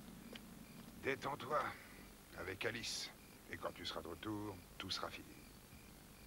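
A man speaks in a low, firm voice close by.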